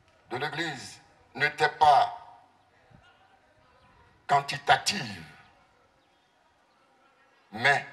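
A man preaches forcefully into a microphone in short bursts, heard through loudspeakers with an echo.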